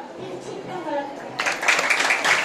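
A young girl speaks into a microphone over a loudspeaker.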